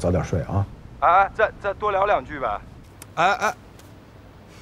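A young man speaks through a phone's loudspeaker.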